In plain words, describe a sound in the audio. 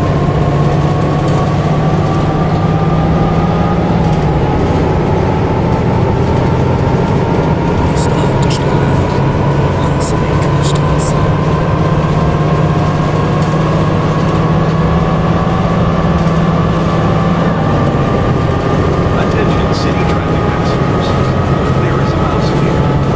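An automatic bus transmission whines, slowly rising in pitch.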